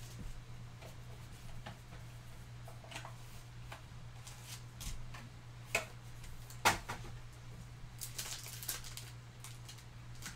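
Plastic and cardboard packaging crinkles and rustles in hands.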